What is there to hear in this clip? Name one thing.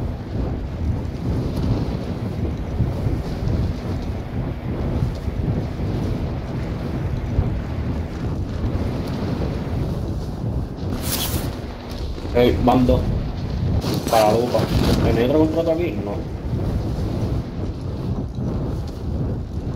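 Wind rushes loudly and steadily past during a fall through the air.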